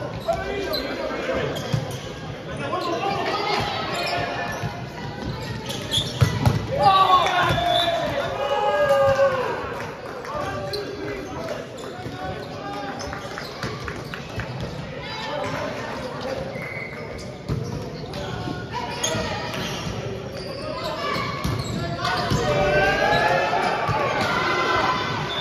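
Young men and women call out to each other during a volleyball game in a large echoing hall.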